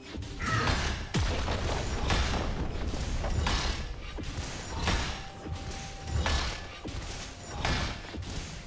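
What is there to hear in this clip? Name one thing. Video game combat sound effects clash in bursts as characters trade blows and spells.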